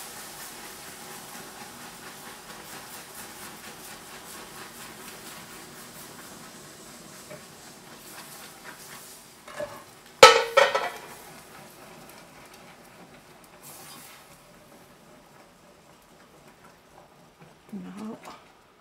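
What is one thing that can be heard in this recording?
Liquid bubbles and sizzles in a pot.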